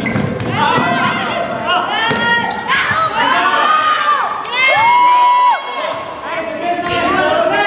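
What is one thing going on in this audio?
Sneakers squeak sharply on a hard court in a large echoing gym.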